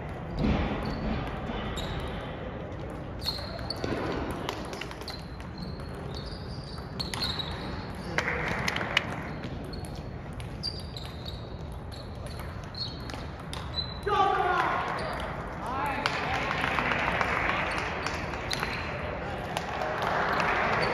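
A ping pong ball clicks back and forth on paddles and a table in a large echoing hall.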